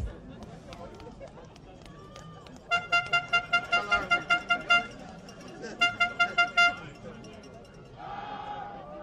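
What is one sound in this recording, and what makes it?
A crowd cheers from the sideline outdoors.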